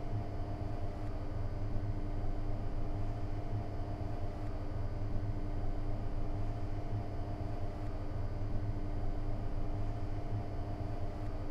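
An electric train motor hums steadily as the train rolls slowly along the track.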